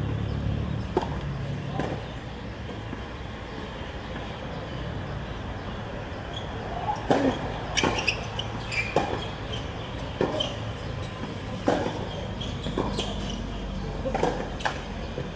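A tennis ball is struck by a racket with sharp pops.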